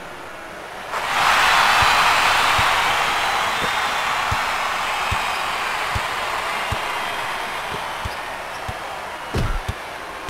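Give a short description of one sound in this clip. A crowd cheers loudly and slowly fades.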